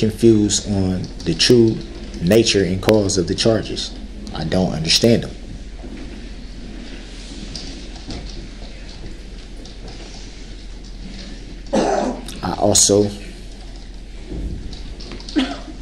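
An adult man speaks with animation, in bursts with pauses.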